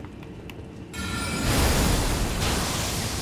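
A crackling magical blast roars.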